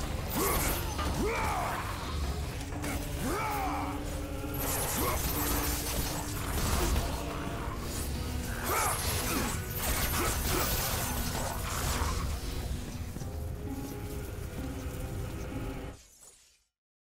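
Blades slash and strike creatures in quick, repeated hits.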